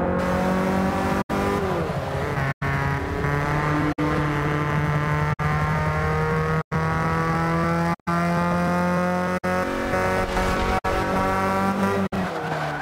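A car engine revs high and shifts up through the gears.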